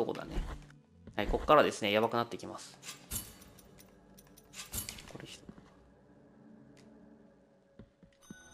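A sword slashes through the air with a sharp swish.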